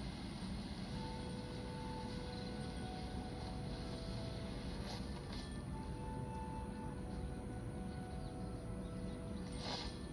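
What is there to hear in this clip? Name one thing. Game music plays quietly from a phone's small speaker.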